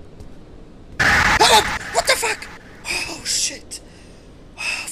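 Eerie creatures screech loudly and suddenly.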